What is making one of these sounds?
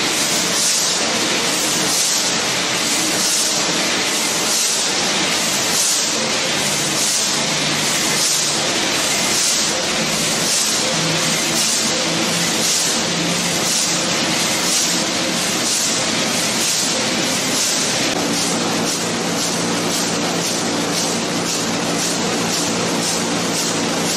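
A large engine runs with a loud, steady, rhythmic clatter and hiss.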